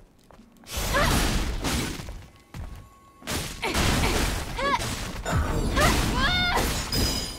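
A creature shrieks in short, rising cries.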